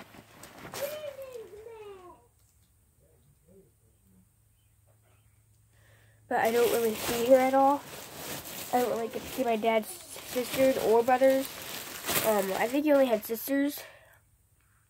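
A young girl talks casually close by.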